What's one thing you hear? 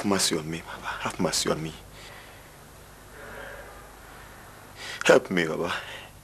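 A middle-aged man speaks forcefully, close by.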